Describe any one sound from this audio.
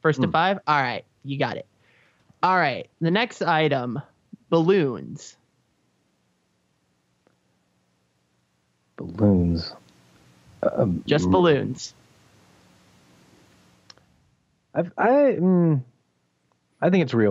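Men talk over microphones in an online call, with animation.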